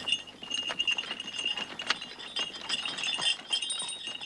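Horse hooves clop on dry ground.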